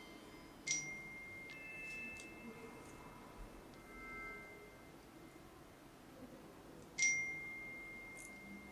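Small metal parts click and ring sharply as pliers bend a thin metal ring.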